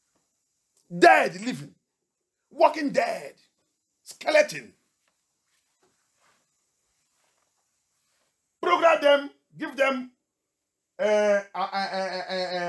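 A man preaches with animation into a microphone, heard through loudspeakers, in short bursts with pauses.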